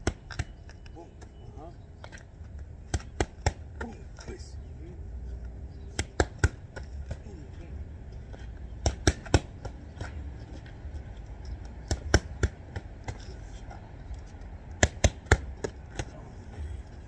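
Boxing gloves smack sharply against punch mitts in quick bursts.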